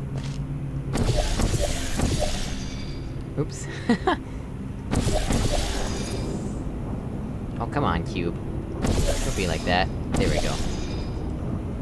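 A sci-fi gun fires with a loud whooshing burst.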